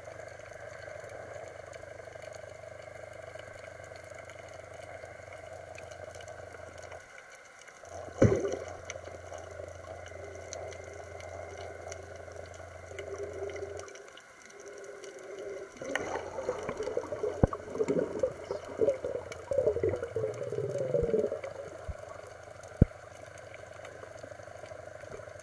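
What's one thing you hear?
Water murmurs in a low, muffled underwater hush.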